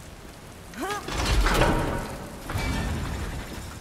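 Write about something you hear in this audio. A heavy wooden gate grinds and rumbles as it opens.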